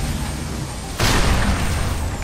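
An explosion booms and rumbles away.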